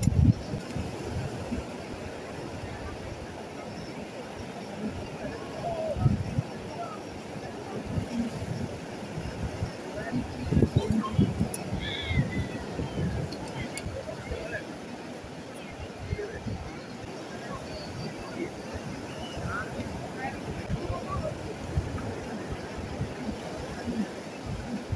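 Waves wash onto the shore in the distance.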